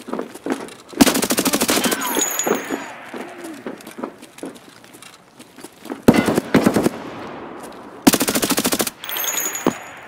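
A rifle fires rapid bursts that ring out with an echo.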